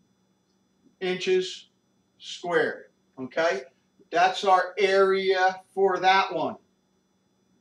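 An older man speaks calmly and clearly, as if explaining.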